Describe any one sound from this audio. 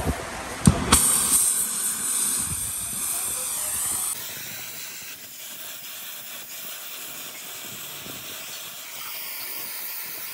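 A gas cutting torch hisses steadily.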